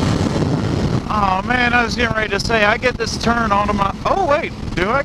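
A motorcycle engine hums and revs up and down.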